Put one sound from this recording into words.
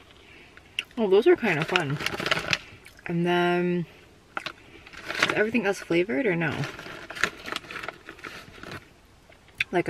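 A plastic snack bag crinkles and rustles.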